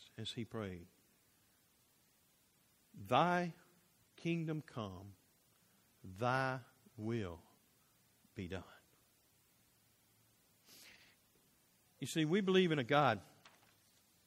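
A middle-aged man speaks slowly with pauses through a microphone in an echoing hall.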